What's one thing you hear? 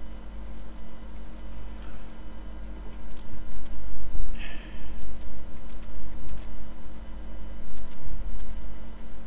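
A man talks calmly into a headset microphone.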